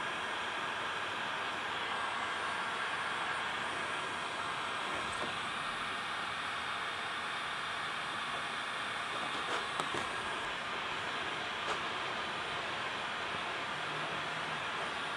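A heat gun blows hot air with a steady roar.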